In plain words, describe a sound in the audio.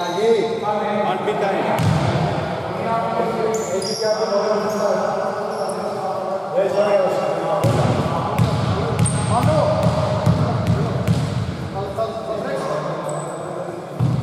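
A basketball bounces on a hard court in an echoing hall.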